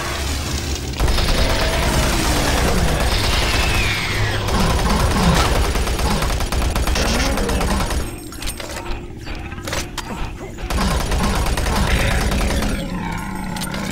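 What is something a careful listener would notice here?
A shotgun fires repeatedly with loud blasts.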